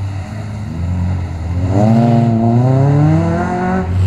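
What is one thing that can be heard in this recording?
Car tyres squeal on tarmac as the car turns sharply.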